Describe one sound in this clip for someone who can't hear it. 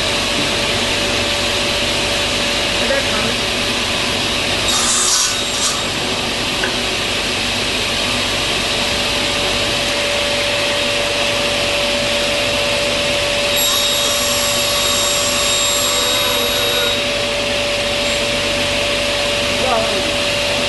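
A table saw motor whines steadily.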